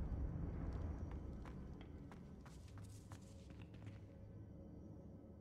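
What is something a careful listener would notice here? Footsteps run across wooden boards.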